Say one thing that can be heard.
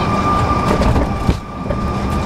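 Aircraft wheels thump onto a runway.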